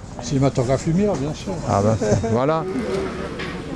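An elderly man speaks with animation close by.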